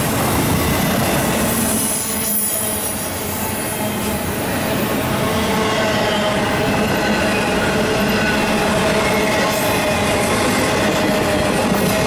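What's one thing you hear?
A freight train rumbles past close by, its wheels clattering steadily on the rails.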